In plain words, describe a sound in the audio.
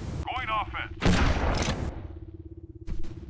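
A weapon fires a burst of crackling energy blasts.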